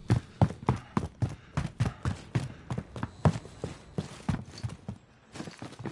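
Heavy boots thud quickly on wooden stairs and floors.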